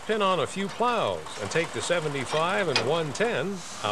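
A metal coupling pin clanks against a steel hitch.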